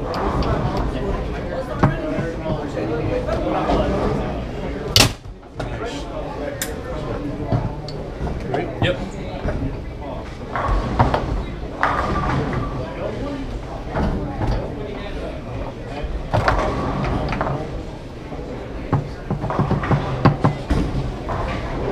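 Foosball rods spin and rattle as a ball is knocked around a table with sharp clacks.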